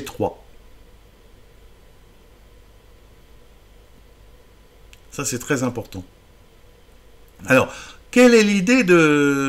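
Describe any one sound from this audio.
A man speaks calmly and closely into a microphone, in short phrases with pauses.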